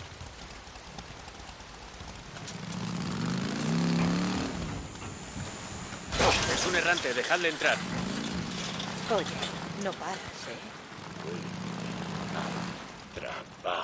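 A motorcycle engine rumbles and revs up and down.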